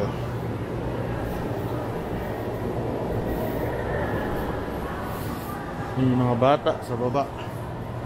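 Footsteps tread down stairs.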